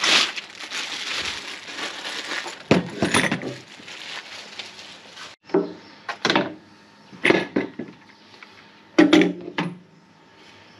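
Plastic and metal parts of a tool knock and clatter as they are handled.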